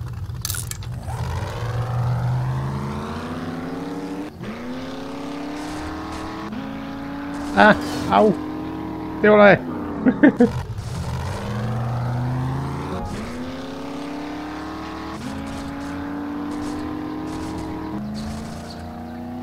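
A truck engine revs up and climbs through the gears again and again.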